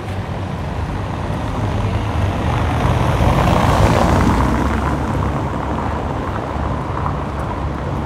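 A vehicle drives past close by, rising and then fading.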